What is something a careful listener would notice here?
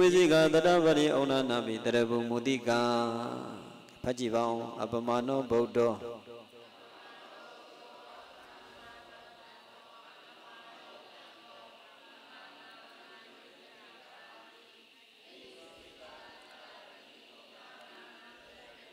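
A man chants into a microphone, loudly at first and then much more softly.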